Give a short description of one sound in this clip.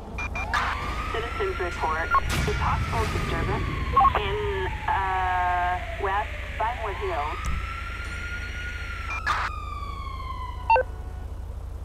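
A short triumphant musical jingle plays with sweeping tones.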